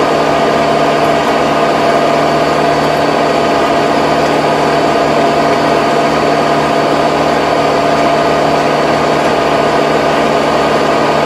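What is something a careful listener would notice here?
A rotary tiller churns through soil.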